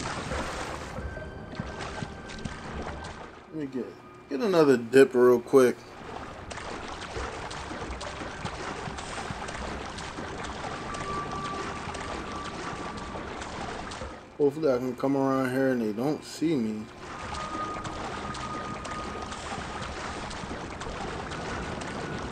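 Water splashes and sloshes as someone swims.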